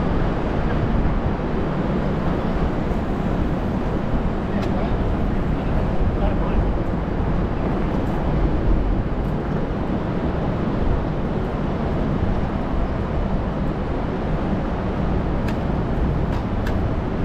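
City traffic rumbles steadily nearby, outdoors.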